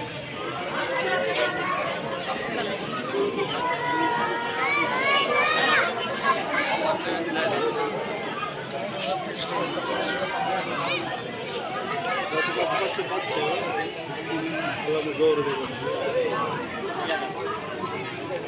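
A crowd of men and children chatter outdoors all around.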